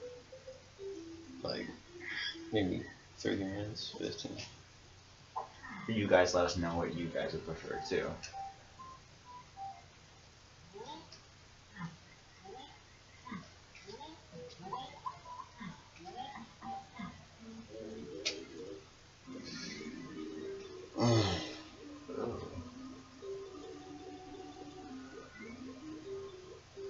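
Cheerful video game music plays from a television speaker.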